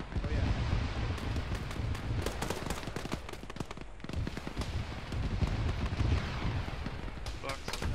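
Gunfire crackles in sharp bursts in the distance.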